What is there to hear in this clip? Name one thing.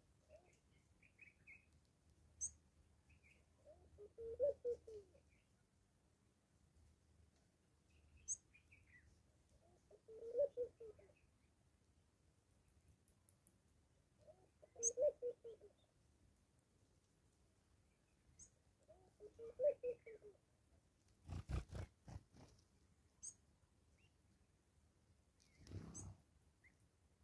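A small bird pecks at seeds on wood.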